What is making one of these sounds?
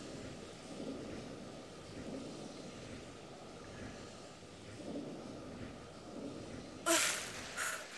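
Water gurgles as a swimmer moves underwater.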